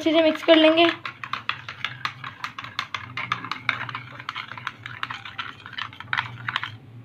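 A spoon scrapes and clinks quickly against a glass bowl.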